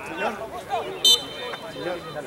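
A referee's whistle blows a short blast.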